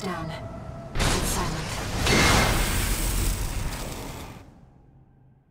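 A powerful energy blast roars and crackles.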